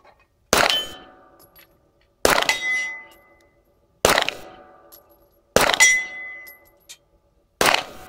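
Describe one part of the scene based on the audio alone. Gunshots fire close by at a steady pace across open ground.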